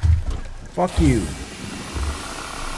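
A flamethrower roars as it fires.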